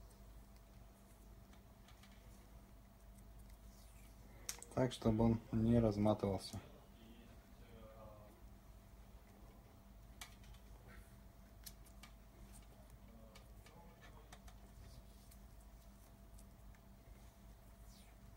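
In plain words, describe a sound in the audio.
Electrical tape tears and crackles as it is unwound.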